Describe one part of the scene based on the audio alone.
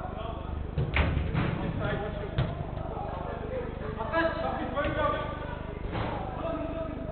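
Men shout and call out to each other in a large echoing hall.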